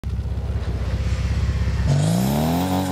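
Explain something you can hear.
A car engine idles with a fast, low rumble.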